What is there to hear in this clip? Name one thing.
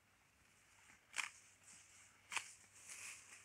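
A cow tears and munches grass close by.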